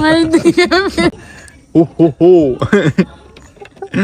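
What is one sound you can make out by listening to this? A boy laughs nearby.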